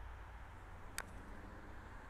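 A putter taps a golf ball with a soft click.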